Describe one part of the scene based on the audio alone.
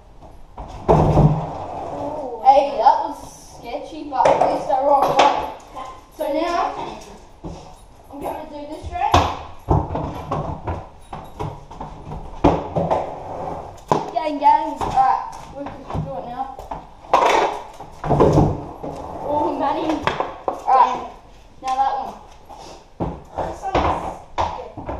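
Skateboards clack and slap against the concrete.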